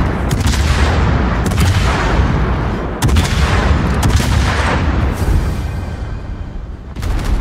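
Heavy guns fire in deep, booming blasts.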